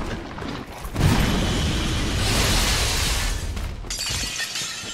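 A frosty blast bursts out with a loud hissing whoosh.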